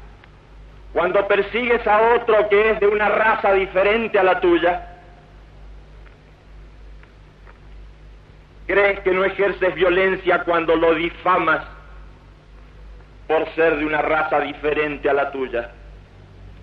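A man speaks loudly and forcefully, in short bursts with pauses.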